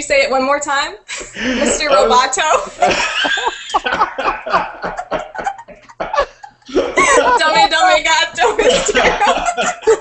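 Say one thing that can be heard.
A woman laughs through an online call.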